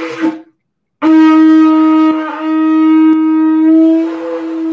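A ram's horn blows a long, loud, steady blast close by.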